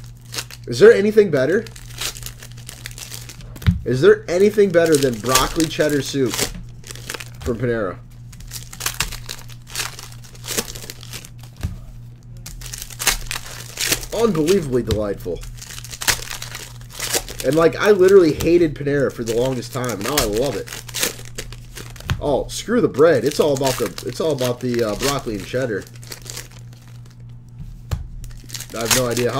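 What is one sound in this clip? Foil card wrappers crinkle and tear as they are opened.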